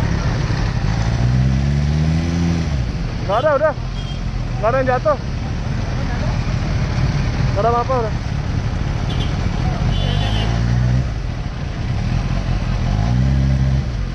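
A motorcycle engine revs up and down briefly.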